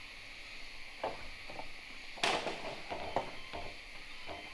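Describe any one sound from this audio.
Wooden objects knock and clatter nearby.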